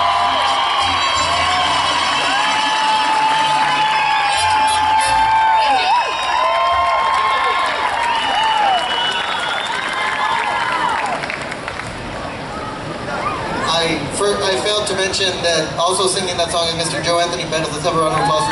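A mariachi band plays trumpets, violins and guitars outdoors.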